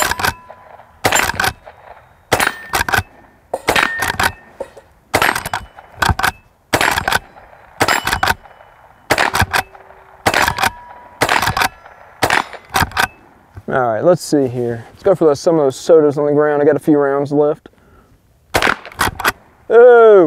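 Loud gunshots fire one after another outdoors, each with a sharp crack.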